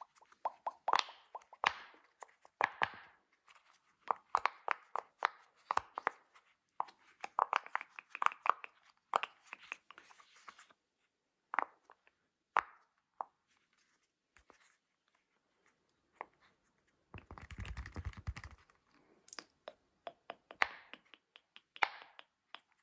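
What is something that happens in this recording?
Silicone bubbles pop with soft, quick clicks as fingers press them.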